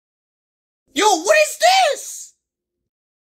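A young man shouts excitedly close to the microphone.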